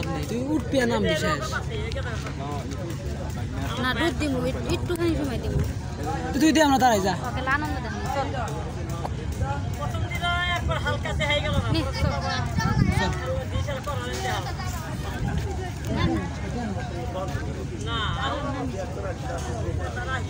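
Several men talk and chatter nearby outdoors.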